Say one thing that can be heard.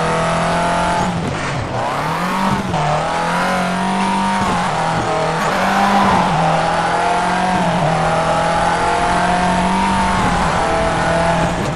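Tyres crunch and skid on loose gravel.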